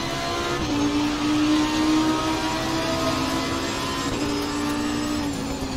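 A racing car engine roars at high revs, rising in pitch and dropping at gear changes.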